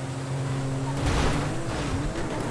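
A car crashes hard into a wall.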